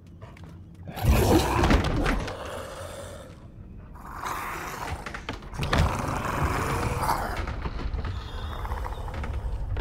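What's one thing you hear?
A creature growls and snarls loudly.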